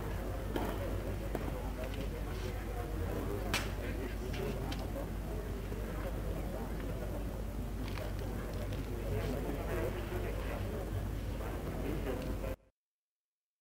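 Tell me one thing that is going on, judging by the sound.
A crowd of spectators murmurs and chatters outdoors.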